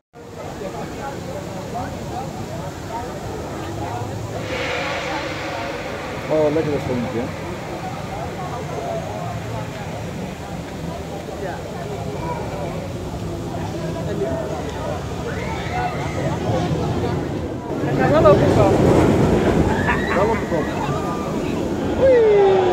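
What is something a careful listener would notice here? A crowd of people chatters outdoors nearby.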